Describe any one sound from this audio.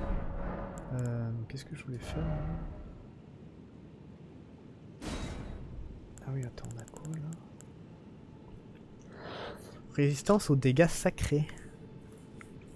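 Soft interface clicks tick as menu items are selected.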